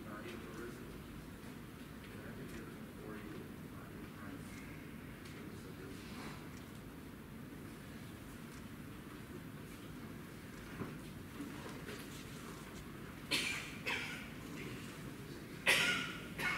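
Footsteps shuffle softly on a hard floor in a large hall.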